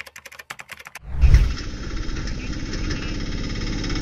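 An auto rickshaw engine putters steadily outdoors.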